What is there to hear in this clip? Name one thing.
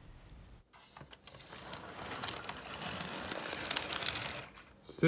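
A plastic toy train clicks and rattles as it is handled.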